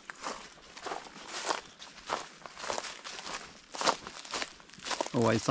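An elderly man speaks calmly close by, outdoors.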